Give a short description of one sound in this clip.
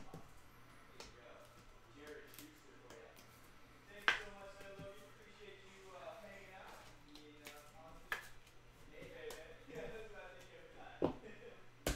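Plastic card sleeves click and rustle in hands.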